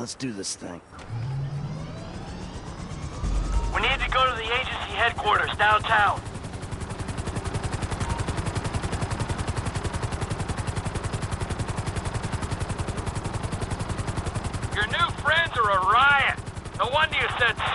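A helicopter engine whines.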